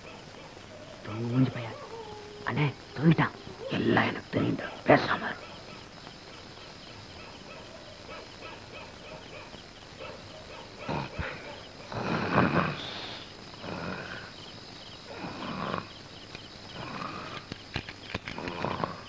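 Men talk in low, hushed voices.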